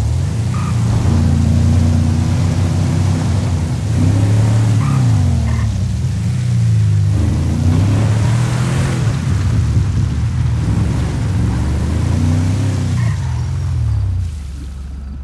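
A truck engine rumbles and revs up and down.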